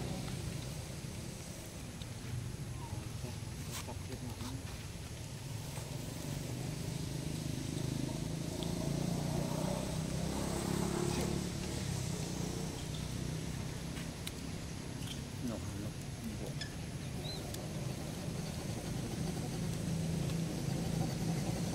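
A monkey chews fruit with soft wet smacking sounds close by.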